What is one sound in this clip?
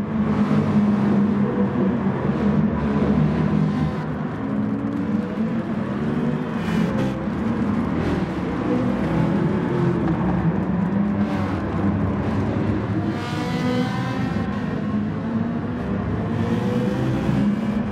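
Racing car engines roar loudly and shift pitch as they speed past.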